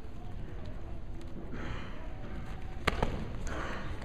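Bodies thud onto a mat as two wrestlers hit the ground.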